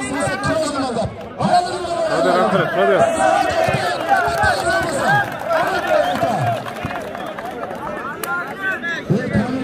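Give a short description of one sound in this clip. A large outdoor crowd of men cheers and shouts loudly.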